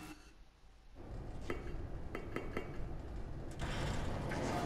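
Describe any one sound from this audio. A gloved fist knocks on a metal hatch.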